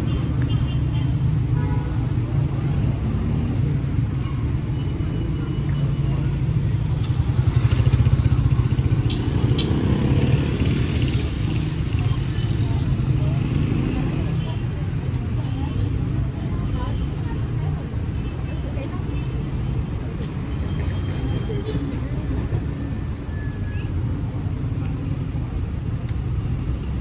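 Street traffic rumbles steadily nearby outdoors.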